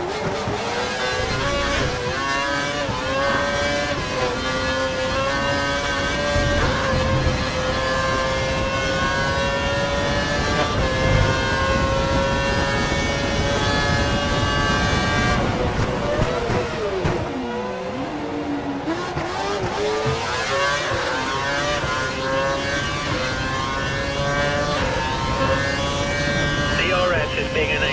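A racing car engine screams at high revs, climbing through quick gear changes.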